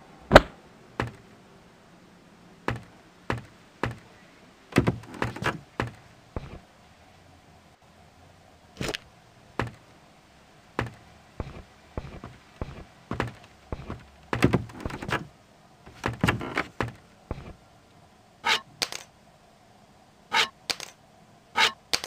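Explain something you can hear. Footsteps thud unevenly on a floor.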